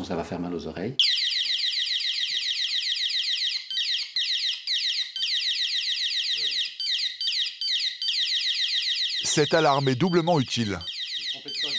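A window alarm beeps in a fast, high, steady pattern.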